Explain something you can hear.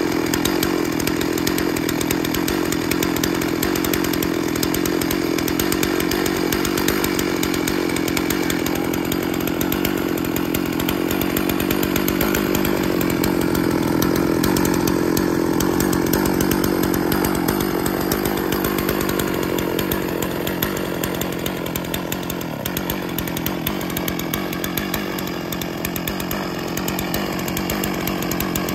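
A chainsaw idles with a steady, close buzzing engine.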